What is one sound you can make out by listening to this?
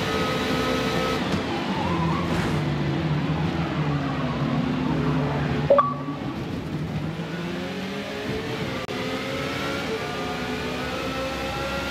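A racing car engine whines loudly, dropping in pitch as it slows and then climbing again as it speeds up.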